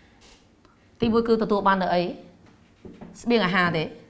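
A woman speaks calmly nearby, as if teaching.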